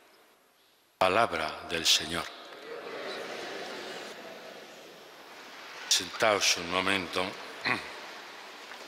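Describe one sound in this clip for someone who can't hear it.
An elderly man reads out calmly through a microphone in a large echoing hall.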